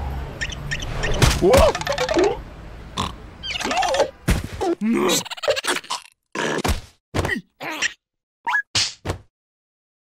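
A cartoon creature squeals and babbles in a high, silly voice.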